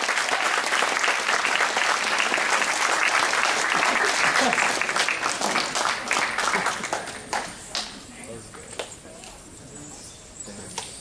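An audience applauds loudly in a large hall, then the clapping fades away.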